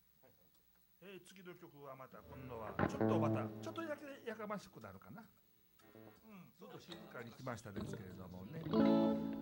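A band starts playing.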